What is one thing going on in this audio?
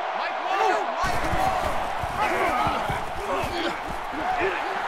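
Football players collide with dull padded thuds.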